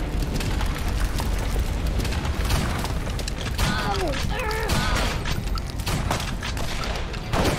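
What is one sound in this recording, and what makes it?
Gunshots and impacts crack from a video game.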